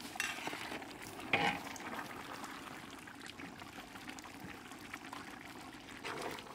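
A thick stew bubbles and simmers in a pot.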